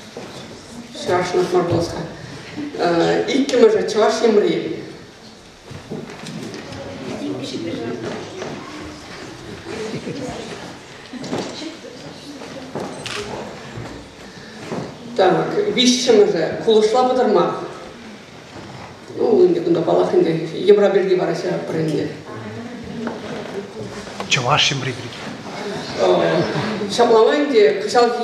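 A young man speaks with animation into a microphone in an echoing hall.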